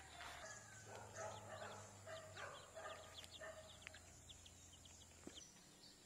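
A hen clucks softly nearby.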